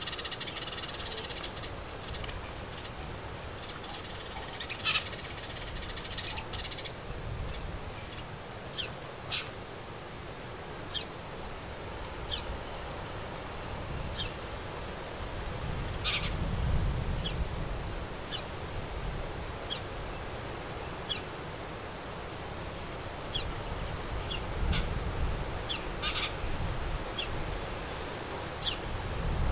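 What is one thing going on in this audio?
Small birds chirp and cheep in short, sharp bursts close by.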